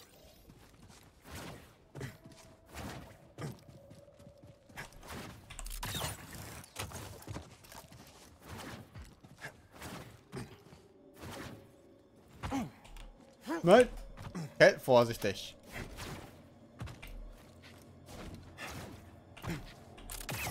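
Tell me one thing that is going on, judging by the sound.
Footsteps run quickly over rocky ground.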